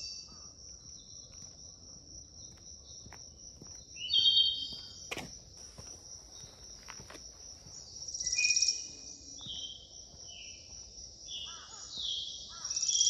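Footsteps fall softly on pavement and stone steps.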